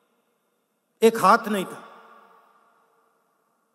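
A man speaks forcefully into a microphone, echoing through loudspeakers in a large open space.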